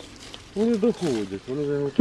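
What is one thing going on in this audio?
Leaves rustle as a hand brushes them.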